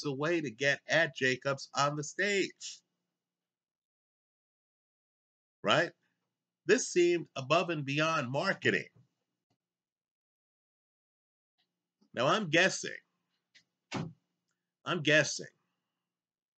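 A middle-aged man speaks calmly and close up, in bursts with pauses.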